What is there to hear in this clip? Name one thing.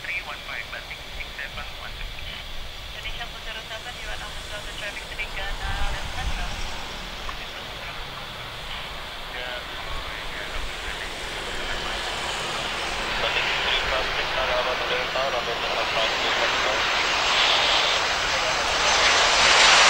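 A jet airliner's engines roar, growing steadily louder as it approaches and passes close by.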